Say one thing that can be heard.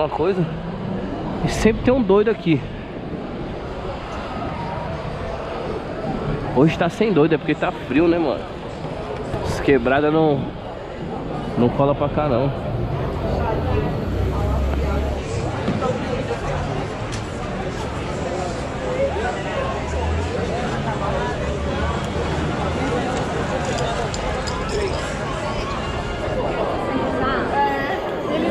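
A crowd of men and women chatters outdoors nearby.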